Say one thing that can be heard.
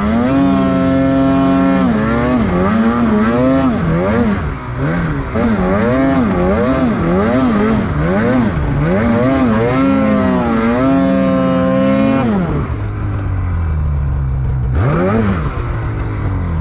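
A snowmobile engine roars close by, revving up and down, then settling to a low idle.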